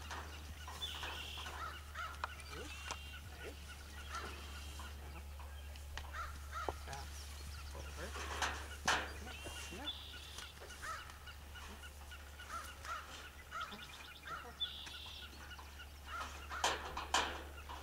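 A metal gate rattles and clanks as it swings.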